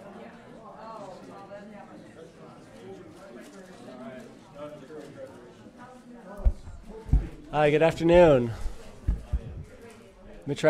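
An audience murmurs and chats quietly in a large room.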